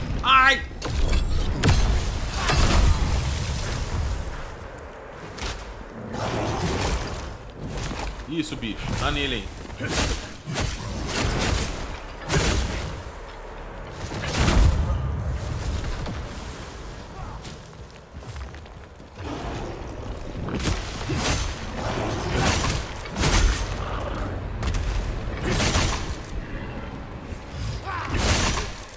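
Heavy blades strike flesh with sharp, wet impacts.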